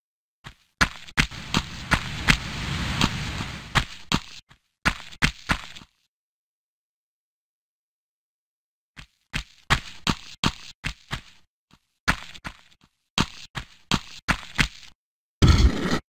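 Footsteps run quickly across a hard stone floor.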